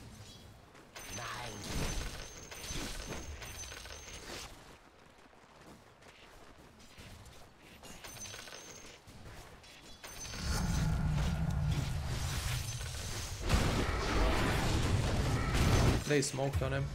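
Game sound effects clash and crackle during a fight.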